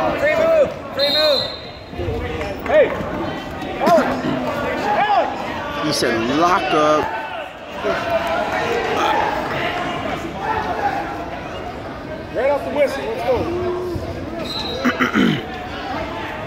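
A referee blows a whistle sharply.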